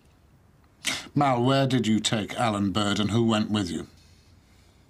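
An older man speaks in a low voice, close by.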